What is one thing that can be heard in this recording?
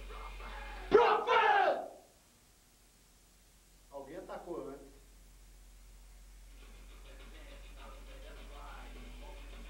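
Young men sing loudly into a microphone in short bursts.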